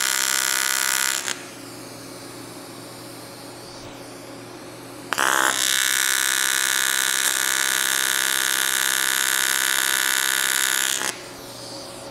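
A welding arc hums and buzzes steadily in bursts.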